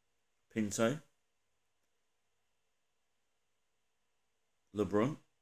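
A man speaks briefly and with animation, close to a microphone.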